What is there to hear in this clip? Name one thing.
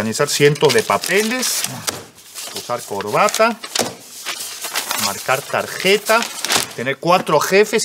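Papers rustle as a man leafs through them.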